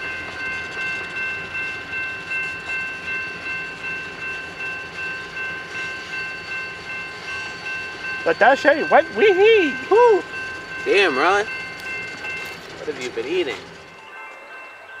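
A freight train rolls past with a rhythmic clatter of wheels on rails.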